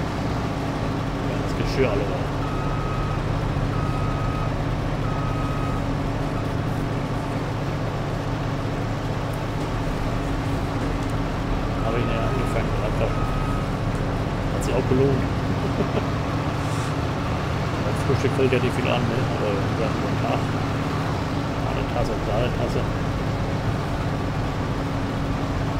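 A harvester engine drones steadily.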